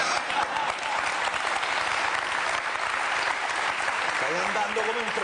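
A studio audience applauds and cheers loudly.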